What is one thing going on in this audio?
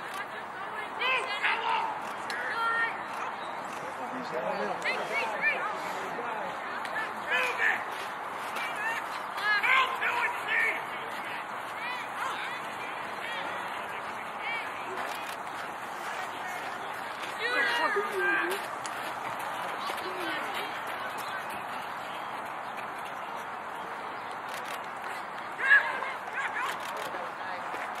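Young players shout to each other at a distance across an open field.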